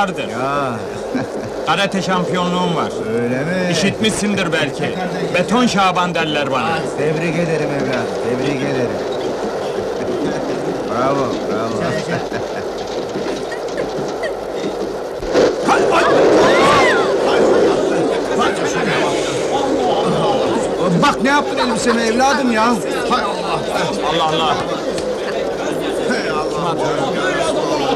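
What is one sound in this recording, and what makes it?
A crowd of men and women jostle and chatter loudly close by.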